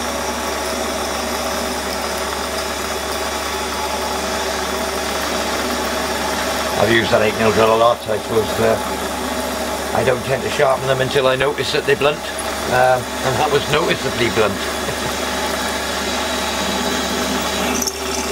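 A cutting tool scrapes against spinning metal.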